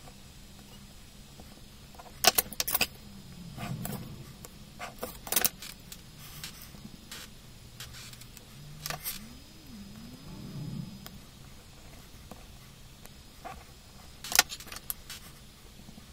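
A compass clicks as it is adjusted.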